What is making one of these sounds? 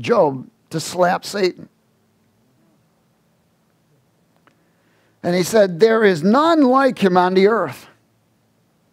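A man speaks with animation through a headset microphone, pausing between phrases.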